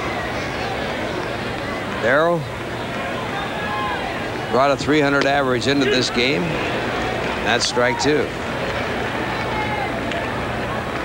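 A large crowd murmurs steadily in a big open stadium.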